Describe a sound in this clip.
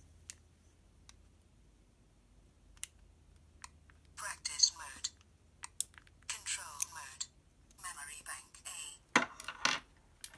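Plastic parts click and rattle in hands.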